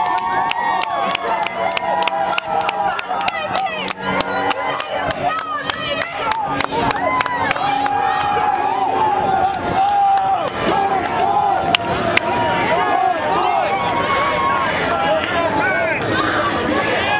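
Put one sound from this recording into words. A large crowd of marchers shouts and chants outdoors.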